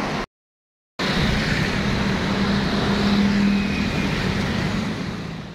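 Cars and motorcycles drive past on a city street.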